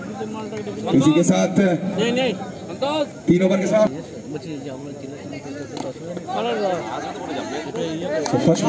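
A man commentates with animation over a loudspeaker.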